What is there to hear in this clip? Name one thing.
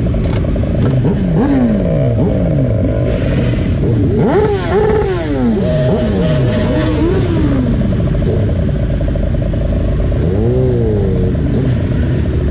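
Motorcycle engines rev up and down sharply nearby.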